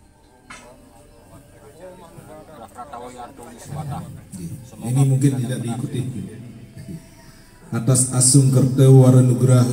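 A group of men chant together in unison outdoors.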